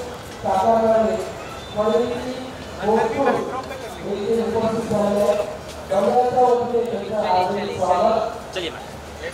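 A woman speaks briefly and cheerfully close by.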